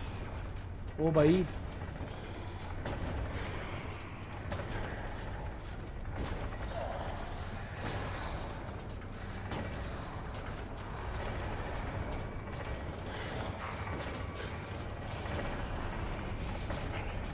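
Heavy machinery hums low and steadily.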